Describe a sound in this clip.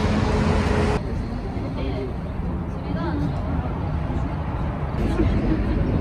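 Young women and men chat quietly at a distance.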